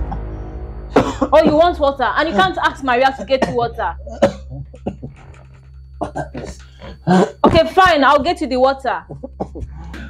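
A young woman speaks with distress nearby.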